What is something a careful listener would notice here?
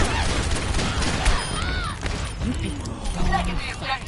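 A revolver fires sharp, loud shots in quick succession.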